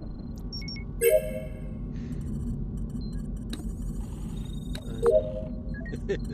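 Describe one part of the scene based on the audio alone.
Short electronic chimes ring out from a control console.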